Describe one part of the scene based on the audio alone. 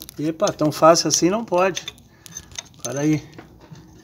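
A metal wrench clinks against a bolt.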